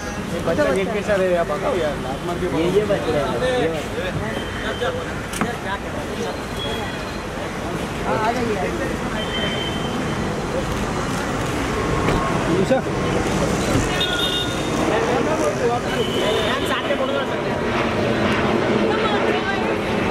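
Several men talk and call out loudly nearby.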